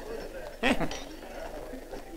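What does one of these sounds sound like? Two glasses clink together in a toast.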